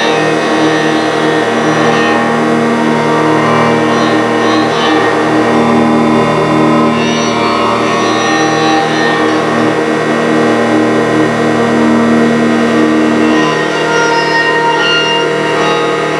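A bowed acoustic guitar drones in layered, sustained tones.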